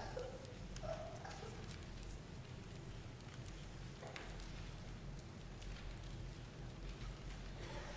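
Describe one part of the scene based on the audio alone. A man chants faintly in a large echoing hall.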